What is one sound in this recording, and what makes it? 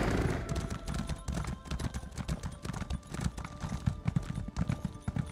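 Hooves thud in a quick, steady rhythm as a mount gallops.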